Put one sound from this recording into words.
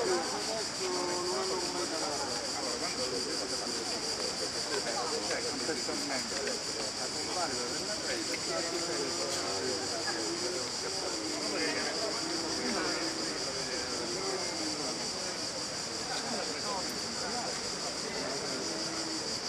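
A crowd of men and women talk over one another outdoors.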